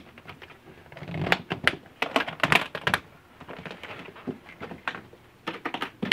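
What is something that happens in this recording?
Metal latches on a guitar case click shut.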